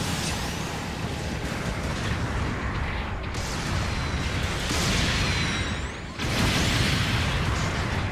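Heavy robot thrusters roar steadily.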